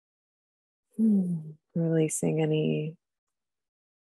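A young woman speaks briefly and calmly over an online call.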